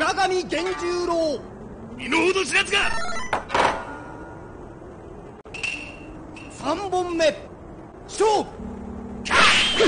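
An announcer's voice calls out loudly.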